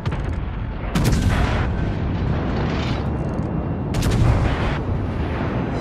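Heavy naval guns fire with loud, booming blasts that echo away.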